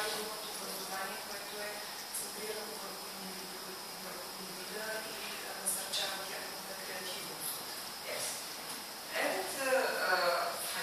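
A man speaks to an audience, heard from the back of a small echoing room.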